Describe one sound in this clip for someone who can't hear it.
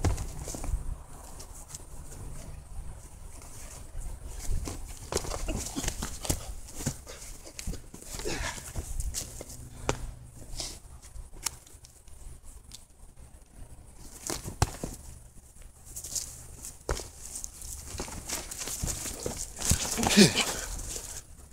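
Boxing gloves thud against bodies in quick blows.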